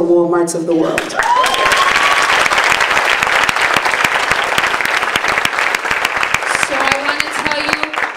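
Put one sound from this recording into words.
A crowd claps and cheers in a large room.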